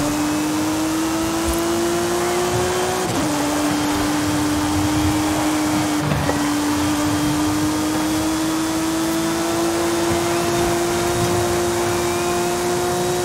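A racing car engine roars at high speed, with brief dips as it shifts gears.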